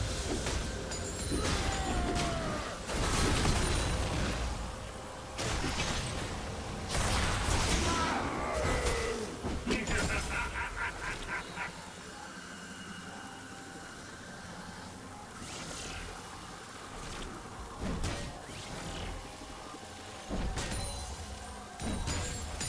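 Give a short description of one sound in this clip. Game combat hits clash sharply.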